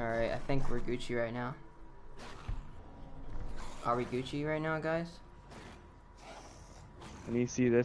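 A ray gun zaps in quick bursts.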